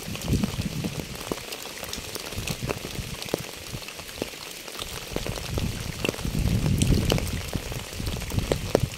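Raindrops patter and drip steadily onto puddles and wet ground outdoors.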